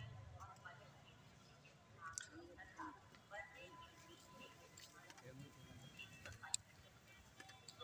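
Men talk nearby outdoors in a low murmur.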